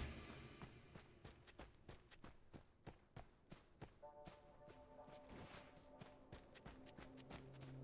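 Quick footsteps crunch on gravel.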